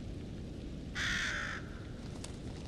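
A crow caws once.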